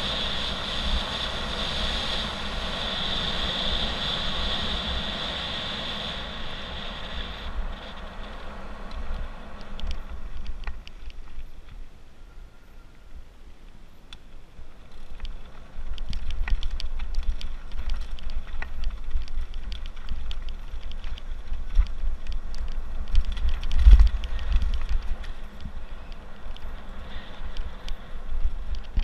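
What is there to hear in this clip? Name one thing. Tyres crunch and rattle over loose gravel.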